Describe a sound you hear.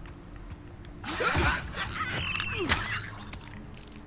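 Bodies scuffle and thud in a violent struggle.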